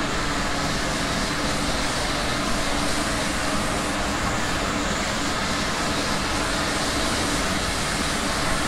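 An electric train hums and rumbles steadily along the rails.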